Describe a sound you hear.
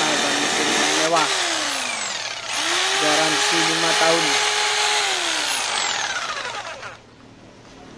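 A power jigsaw whines loudly as its motor speeds up and slows down.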